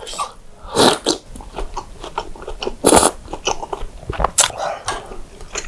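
A spoon clinks against a glass dish.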